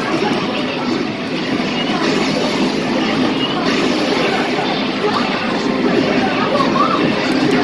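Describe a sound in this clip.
Music from an arcade game plays loudly through loudspeakers.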